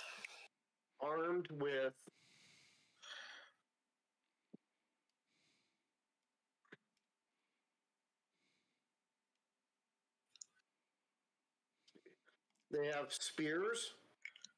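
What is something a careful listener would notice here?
A man speaks into a headset microphone in short bursts.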